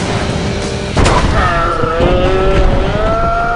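A loud crash of metal hits the road.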